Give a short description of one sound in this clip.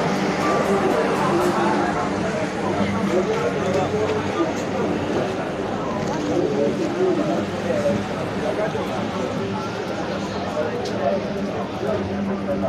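A crowd of men and women chatter all around.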